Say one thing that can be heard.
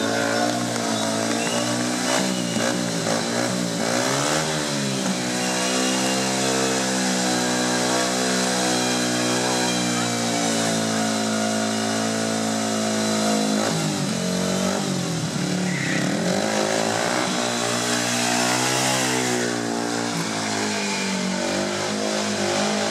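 Motorcycle tyres spin and skid on concrete.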